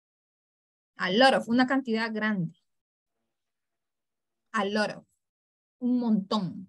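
A woman speaks calmly over an online call, in short phrases with pauses.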